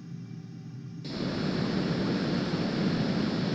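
A jet engine roars loudly, with rushing wind.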